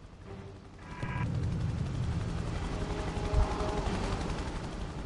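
A helicopter's rotor thumps and roars overhead.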